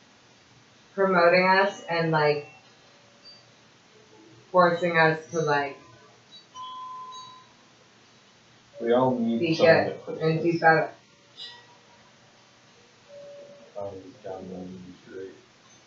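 A woman speaks close by, in short bursts.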